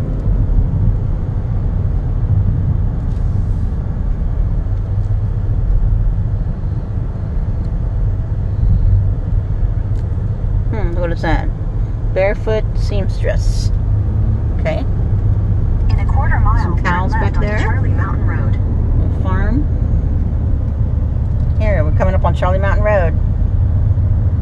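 A car rolls along a road with a steady low rumble from inside.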